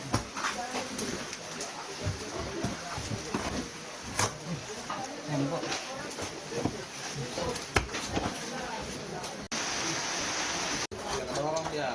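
Several men talk urgently nearby.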